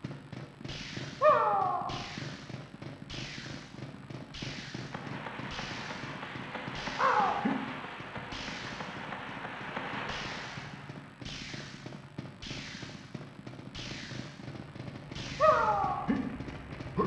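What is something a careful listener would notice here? Footsteps splash through shallow water at a steady pace.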